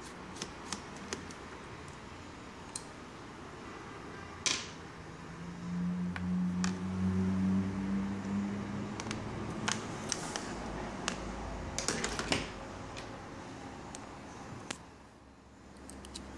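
A screwdriver clicks and taps against metal screws.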